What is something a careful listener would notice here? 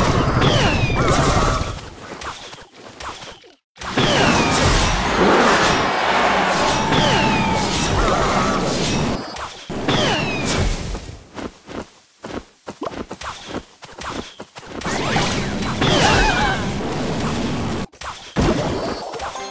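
Game sound effects clash and whoosh as small troops battle.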